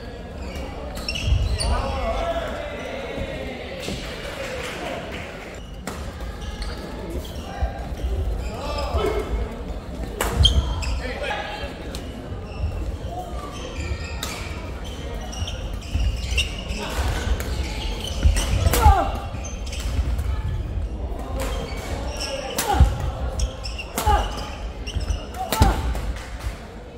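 Young players shout to each other.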